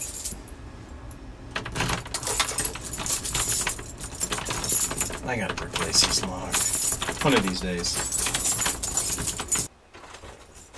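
Keys jingle and rattle in a door lock.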